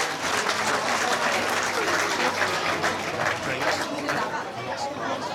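A crowd of spectators claps and cheers outdoors, loudest at first and then dying down.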